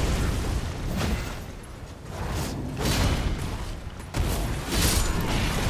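A heavy blade swings with a loud whoosh.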